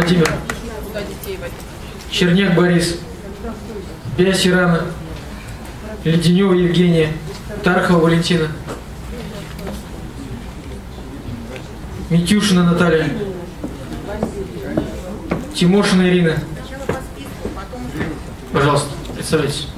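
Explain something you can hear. A man speaks in bursts through a microphone in an echoing hall.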